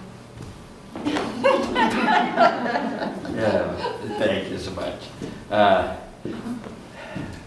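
An elderly woman talks nearby.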